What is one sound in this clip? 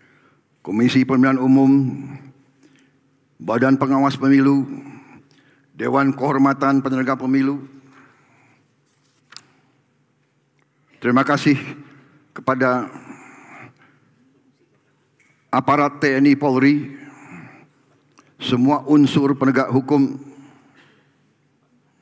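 An older man speaks slowly and firmly into a microphone, in short phrases with pauses.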